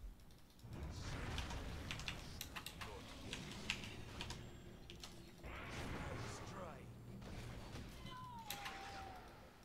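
Sharp magical hits and impacts crackle in quick bursts.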